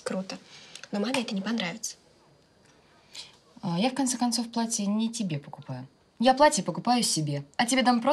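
Another young woman speaks softly in reply nearby.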